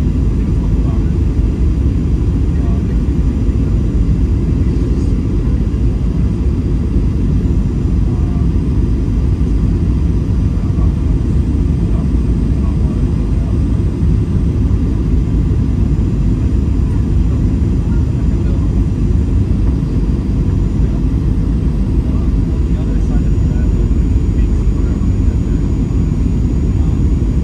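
Jet engines roar in a steady, deep rumble heard from inside an airliner cabin.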